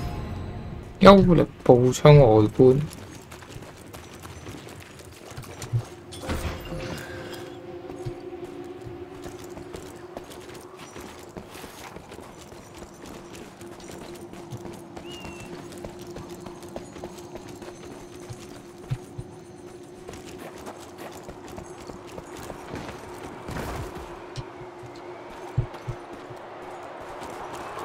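Footsteps crunch softly on dirt and gravel.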